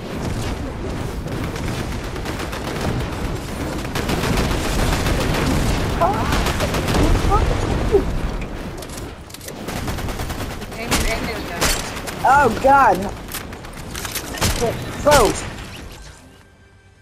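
Gunshots ring out in rapid bursts.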